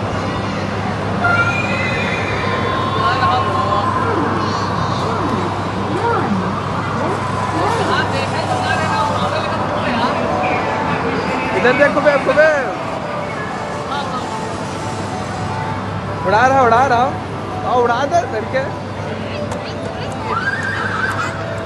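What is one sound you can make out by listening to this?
A crowd murmurs in a large echoing indoor space.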